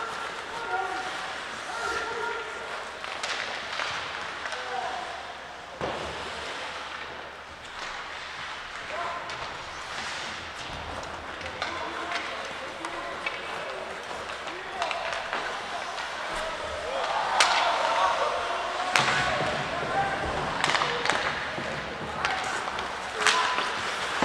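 Young players shout to each other across the echoing rink.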